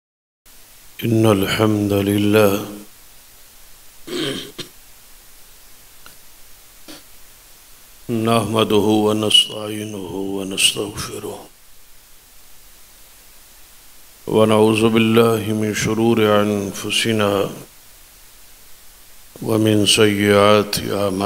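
An elderly man speaks with feeling into a microphone, in bursts with pauses, heard through loudspeakers in an echoing hall.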